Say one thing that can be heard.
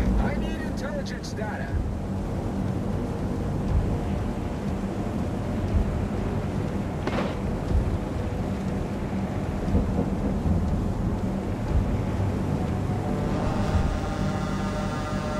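Waves wash and lap steadily against a ship's hull.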